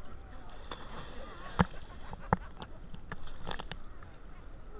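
Water splashes loudly as a swimmer thrashes nearby.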